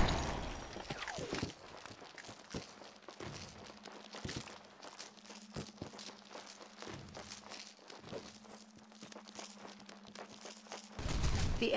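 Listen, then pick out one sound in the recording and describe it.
Footsteps patter across the ground.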